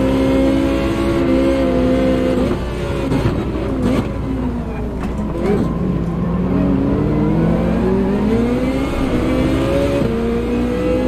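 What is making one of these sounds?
A racing car engine roars steadily, its pitch falling when braking and rising as it accelerates through the gears.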